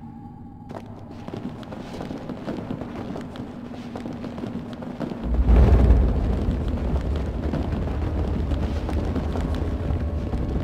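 Small footsteps crunch over loose rubble.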